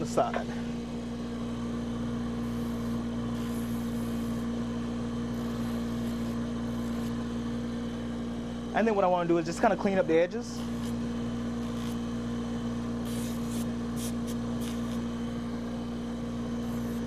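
A bench grinder motor hums steadily.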